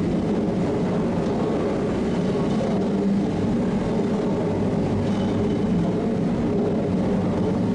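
Old machinery rumbles and clatters steadily.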